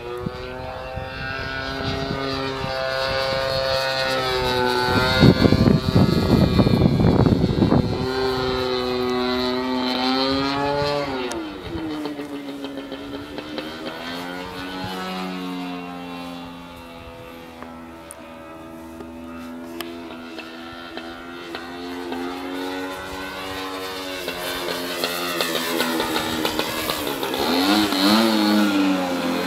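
A model airplane engine buzzes loudly, its pitch rising and falling as it flies past.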